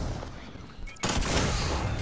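A heavy rifle fires a single loud shot.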